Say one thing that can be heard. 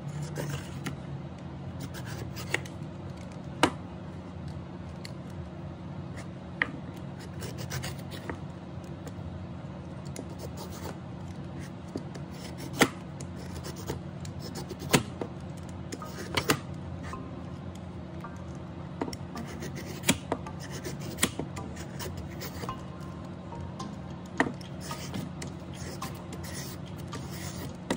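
A vegetable peeler scrapes along a carrot in short, quick strokes.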